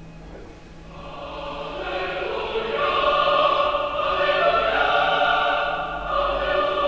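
Recorded choral music plays through a loudspeaker.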